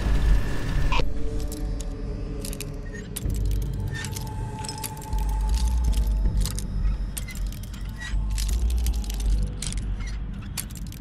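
A lock pick scrapes and clicks inside a lock.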